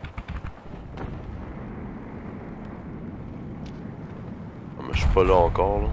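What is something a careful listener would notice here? Explosions boom and rumble in the distance.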